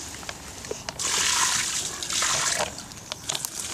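Water splashes as it pours out of a bag.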